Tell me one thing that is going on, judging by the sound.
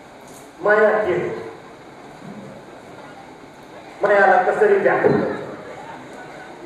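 A middle-aged man recites into a microphone in an expressive, drawn-out voice, heard through a loudspeaker in an echoing hall.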